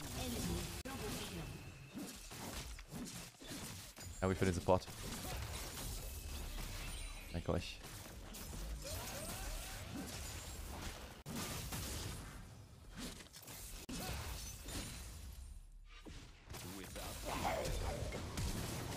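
Game effects clash and whoosh during a fight.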